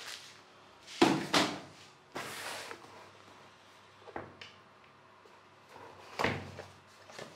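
A cardboard box slides and taps as it is picked up.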